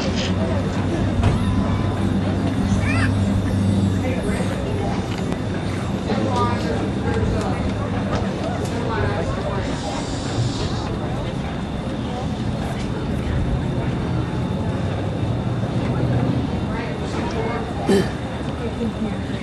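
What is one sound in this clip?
Men and women chat quietly nearby.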